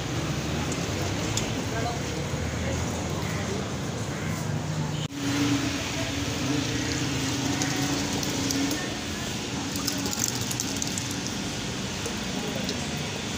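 Thick liquid pours and splashes into a plastic bucket.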